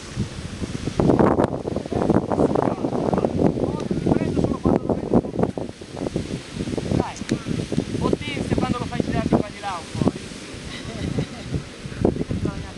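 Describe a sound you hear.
Wind gusts and buffets loudly outdoors.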